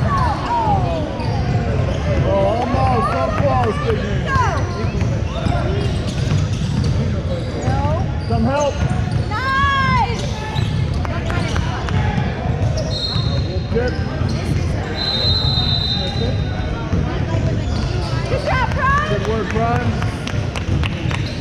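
Basketballs bounce on a wooden floor in a large echoing gym.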